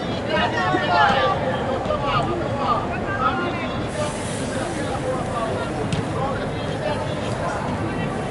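Young women call out to each other in a large echoing indoor hall.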